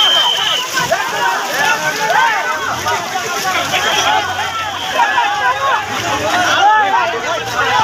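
Fast floodwater rushes and roars.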